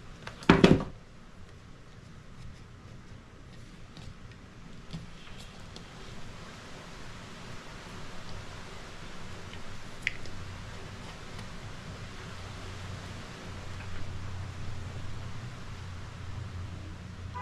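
String rustles faintly as fingers wind it around a small object.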